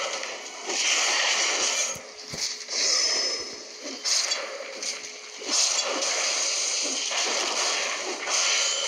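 Metal swords clash and ring in quick bursts.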